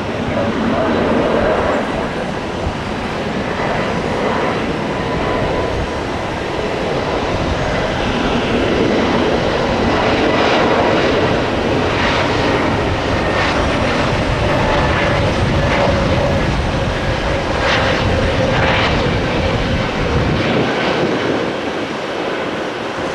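A jet airliner's engines roar loudly as it takes off.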